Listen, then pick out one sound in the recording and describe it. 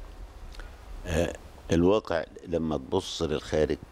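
An elderly man speaks calmly into a close microphone.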